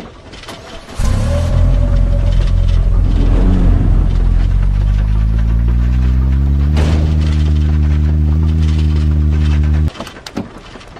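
A vehicle engine starts and revs up loudly, rising in pitch as it drives off.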